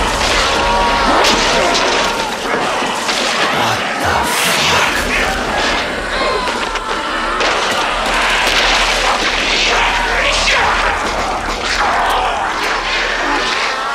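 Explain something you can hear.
Heavy blows and scuffles thud during a violent fight.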